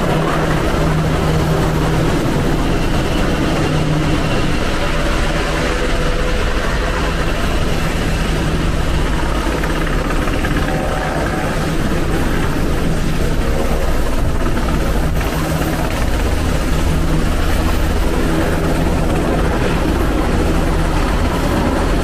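A helicopter's rotor thumps steadily nearby.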